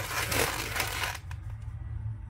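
Rubber balloons rub and squeak against each other.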